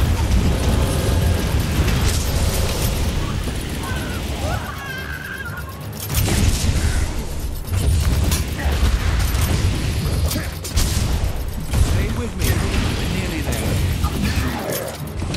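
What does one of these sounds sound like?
Heavy blows and blasts thud and crack.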